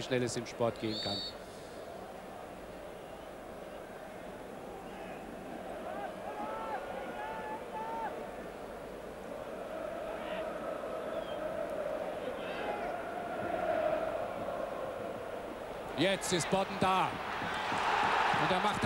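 A large stadium crowd murmurs steadily outdoors.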